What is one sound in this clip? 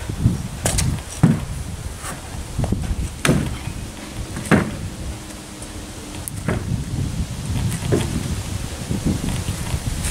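Scooter wheels knock and clatter on a board.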